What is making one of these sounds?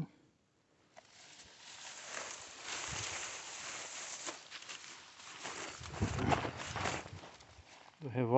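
Tall dry grass rustles as someone pushes through it.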